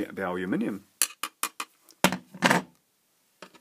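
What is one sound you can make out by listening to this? A plastic disc clatters as it is set down on a hard surface.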